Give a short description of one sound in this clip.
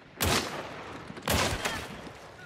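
A rifle shot cracks.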